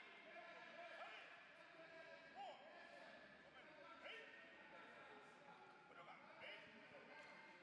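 Young fighters let out short, sharp shouts.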